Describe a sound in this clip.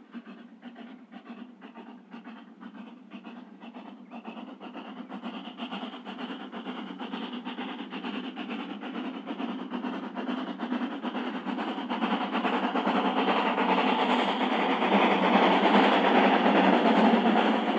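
A steam locomotive chuffs rhythmically, growing louder as it approaches.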